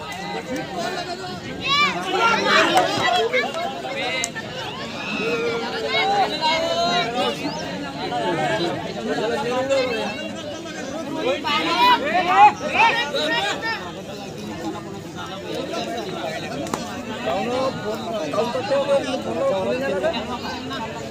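Young men call out to each other across the field.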